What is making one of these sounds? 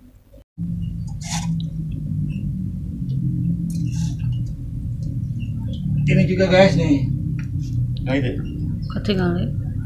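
A stick clinks against glass jars.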